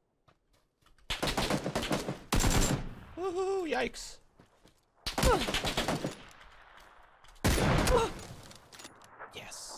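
Rapid gunfire bursts out loudly several times.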